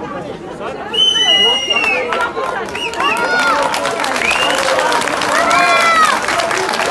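Women shout and cheer loudly in high voices.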